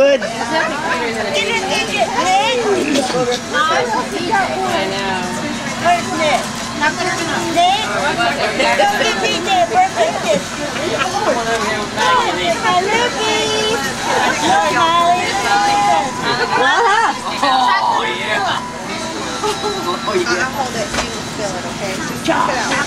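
Several adults and children talk and chatter nearby.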